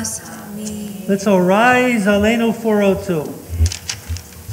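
A young woman sings into a microphone in an echoing hall.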